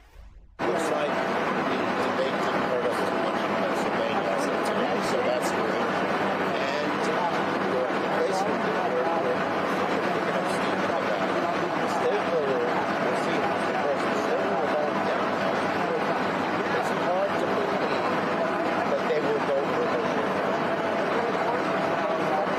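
An elderly man speaks quietly and close up.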